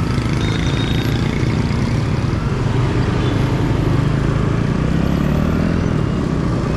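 Motorbikes and traffic rumble past on a busy street.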